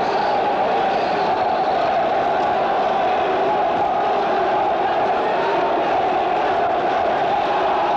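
A large crowd murmurs steadily in an echoing hall.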